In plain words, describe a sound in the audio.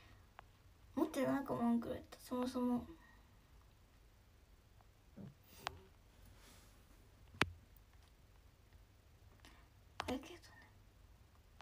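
A young woman speaks softly and calmly, close to a microphone, with long pauses.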